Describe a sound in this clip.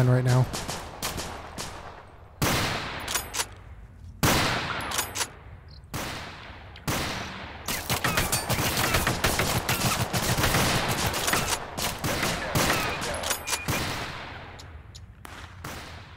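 A rifle fires single loud shots that echo across open ground.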